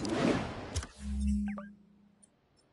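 A low electronic tone hums briefly.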